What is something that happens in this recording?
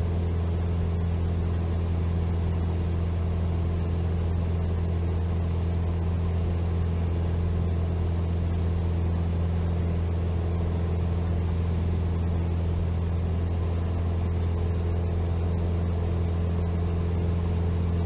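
A small propeller plane's engine drones steadily and loudly from close by.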